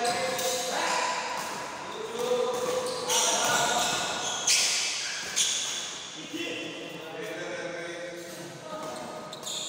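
A crowd of spectators chatters and calls out in an echoing hall.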